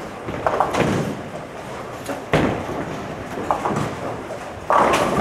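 Bowling pins crash and clatter across a large echoing hall.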